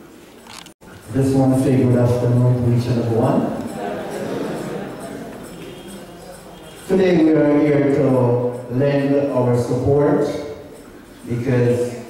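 A man speaks with feeling through a loud microphone.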